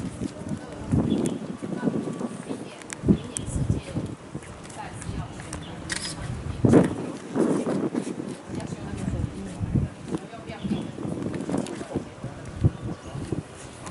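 Men and women talk and chatter nearby outdoors.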